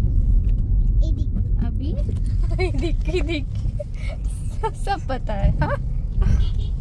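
A man talks close by inside a car.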